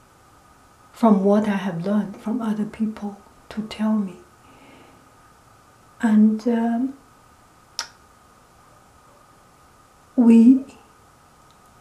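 A middle-aged woman speaks calmly and close by, in short phrases.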